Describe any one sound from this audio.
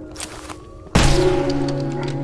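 A shotgun fires with a loud blast.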